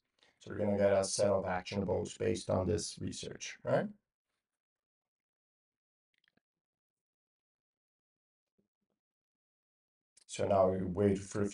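A man speaks calmly and explains close to a microphone.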